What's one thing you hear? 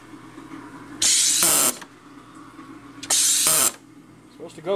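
A soda maker hisses loudly in short bursts as gas is pumped in.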